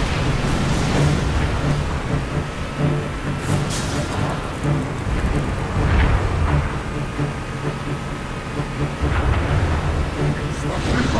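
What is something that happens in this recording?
A vehicle engine rumbles steadily as it drives over rough ground.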